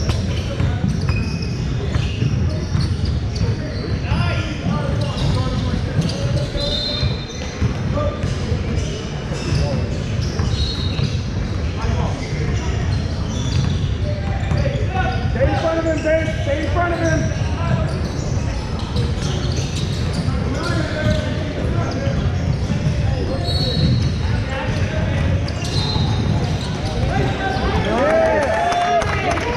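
Sneakers squeak on a wooden court in a large echoing gym.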